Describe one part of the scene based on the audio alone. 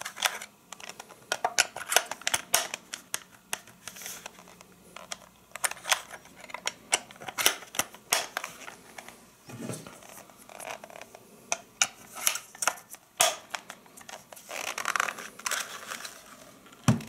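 Metal mixer beaters click and rattle as they are fitted into a plastic hand mixer.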